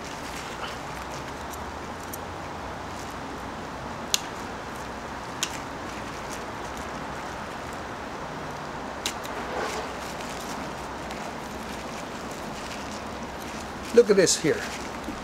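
Pruning shears snip small twigs with sharp clicks.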